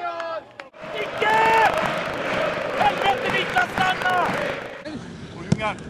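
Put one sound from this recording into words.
A stadium crowd roars.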